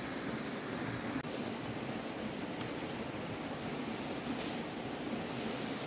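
Leaves rustle as plants are pulled by hand.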